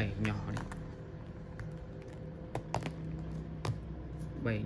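Smartphones clack and tap against each other as they are handled.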